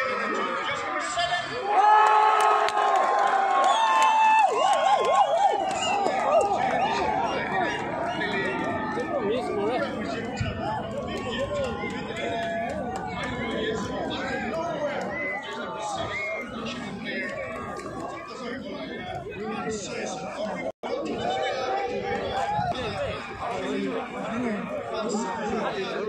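A large outdoor crowd cheers and chatters.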